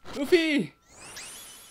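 A young man exclaims briefly into a microphone.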